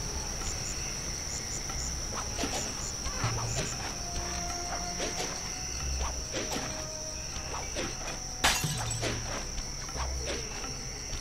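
Light footsteps patter quickly as a character runs and leaps.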